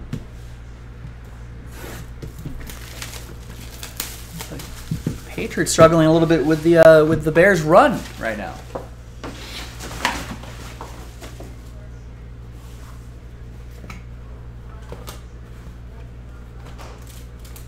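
Cardboard scrapes and taps as a box is opened.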